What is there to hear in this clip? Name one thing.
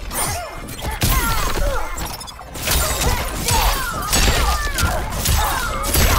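Heavy punches and kicks land with sharp thuds.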